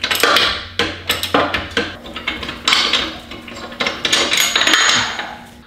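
Metal parts clink and scrape.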